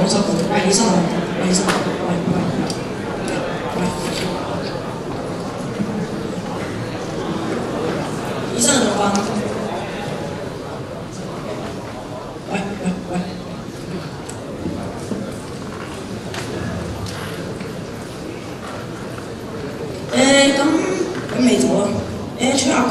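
An audience murmurs and chatters in the hall.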